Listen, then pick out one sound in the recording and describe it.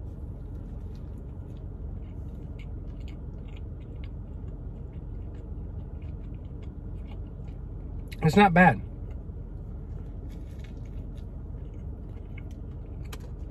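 A young man chews food with his mouth full.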